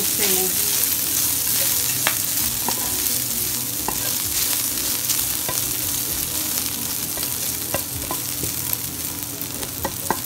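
A spatula scrapes and taps against a frying pan.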